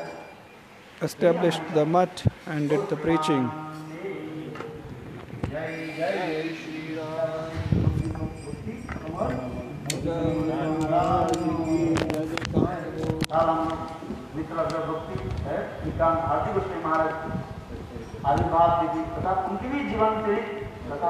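An elderly man sings through a microphone.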